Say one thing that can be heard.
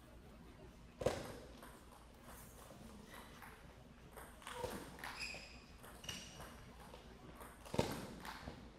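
A table tennis ball clicks back and forth off paddles and the table.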